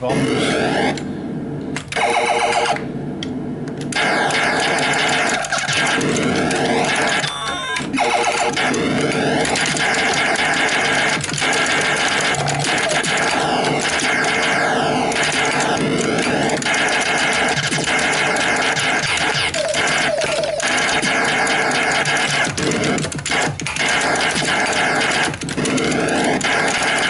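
An arcade game plays loud electronic zaps and explosions.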